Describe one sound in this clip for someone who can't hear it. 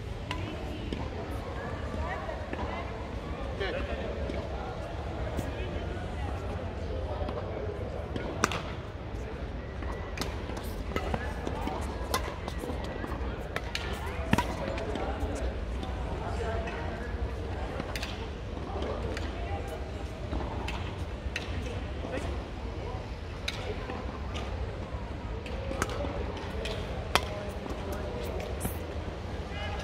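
Shoes squeak and patter on a court floor.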